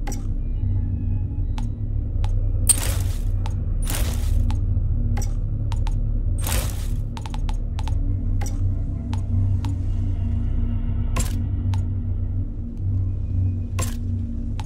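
Short interface clicks and swishes sound now and then.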